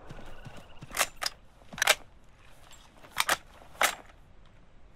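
A rifle is reloaded with sharp metallic clicks.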